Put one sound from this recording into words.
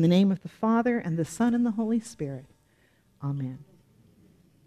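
A middle-aged woman speaks with animation through a microphone.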